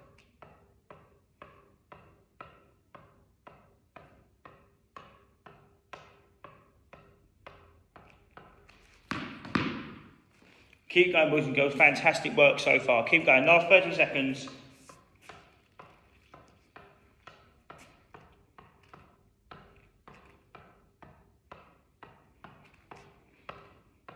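A tennis ball taps on a racket's strings again and again in a steady rhythm.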